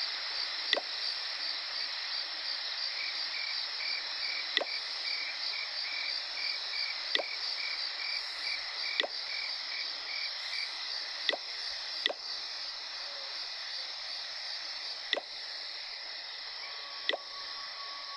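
Short interface clicks sound as menus open and close.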